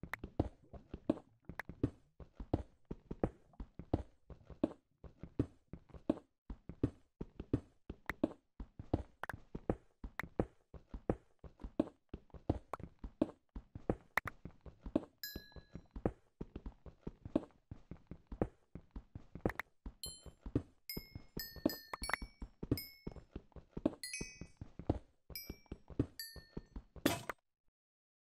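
A pickaxe chips rapidly at stone, knocking again and again.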